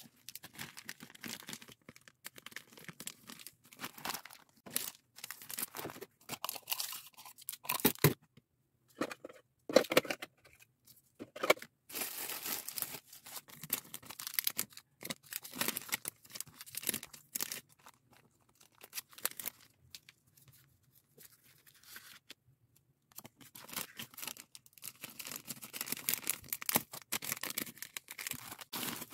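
Plastic wrappers crinkle and rustle close by.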